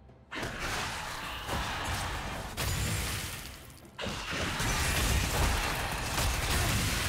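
Game magic spells burst and crackle during a fight.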